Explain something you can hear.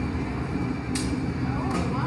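A metal rod clinks against metal.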